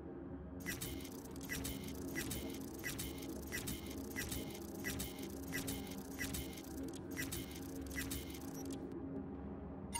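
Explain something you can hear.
Soft electronic menu ticks sound at a steady, quick pace.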